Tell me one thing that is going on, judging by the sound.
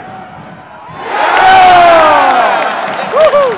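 A large crowd roars loudly in a burst of cheering.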